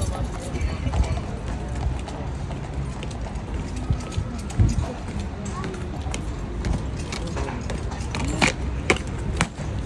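Heavy boots stamp on stone paving.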